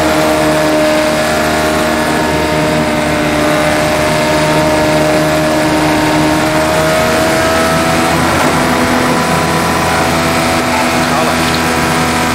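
A racing car engine whines loudly at high revs, its pitch slowly rising and shifting through gears.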